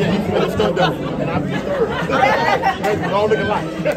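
Two young women laugh together.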